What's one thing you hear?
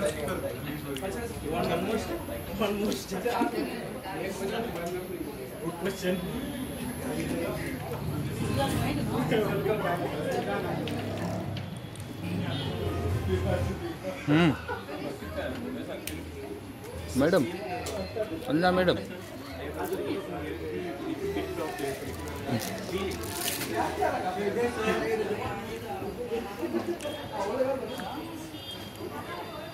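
Several young women chatter nearby.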